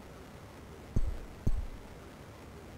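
A cricket bat strikes a ball with a dull thud.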